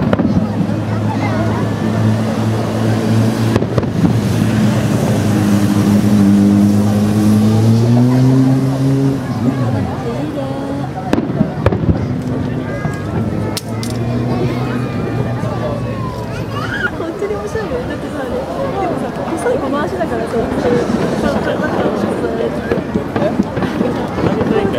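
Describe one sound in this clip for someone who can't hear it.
Fireworks burst with dull bangs in the distance.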